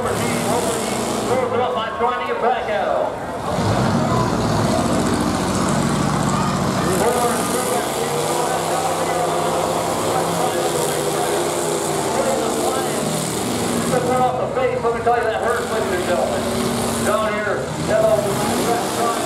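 Car engines rev and roar loudly.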